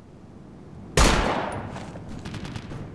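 A rifle shot cracks loudly and echoes.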